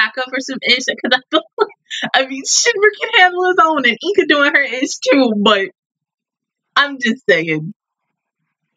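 A young woman talks cheerfully and laughs close to the microphone.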